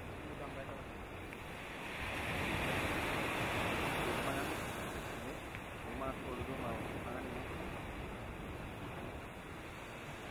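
Wind blows over open water.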